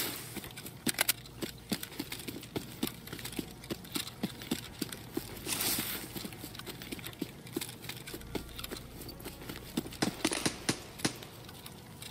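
Footsteps crunch quickly over grass and dirt.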